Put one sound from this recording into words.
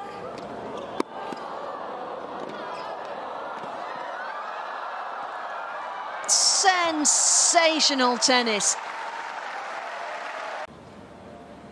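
A large crowd applauds and cheers loudly.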